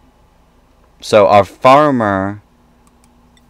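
A man speaks briefly and with animation into a microphone, up close.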